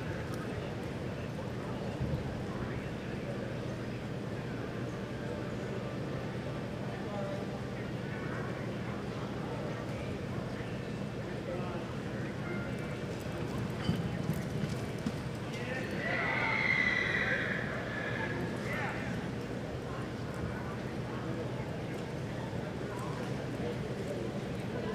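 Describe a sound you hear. A horse's hooves thud softly on dirt.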